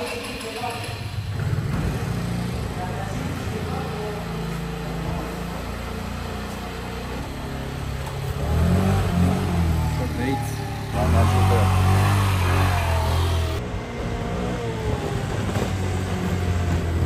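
A scooter engine hums at low speed.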